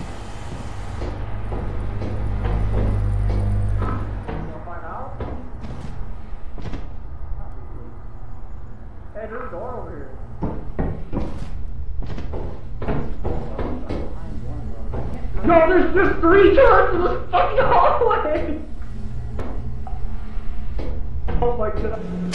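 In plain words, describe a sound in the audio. Footsteps clang on metal grating.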